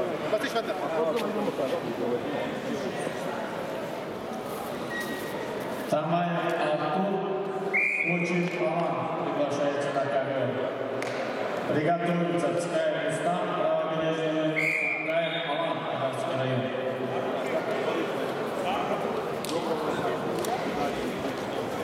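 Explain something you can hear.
Spectators murmur in a large echoing hall.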